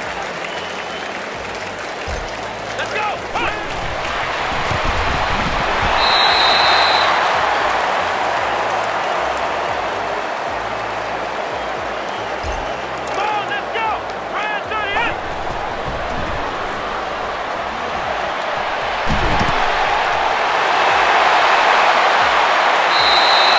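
A large stadium crowd roars steadily, swelling now and then.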